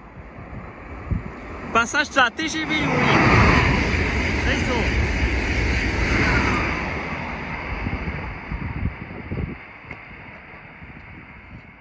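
A high-speed train rushes past with a loud roar and then fades into the distance.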